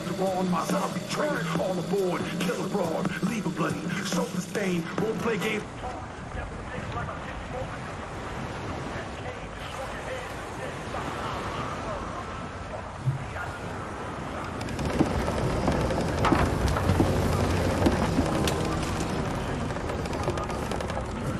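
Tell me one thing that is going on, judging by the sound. Gentle waves lap softly against a wooden dock.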